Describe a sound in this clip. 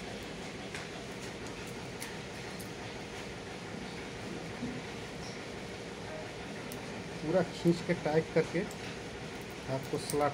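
Small metal parts click and scrape together by hand.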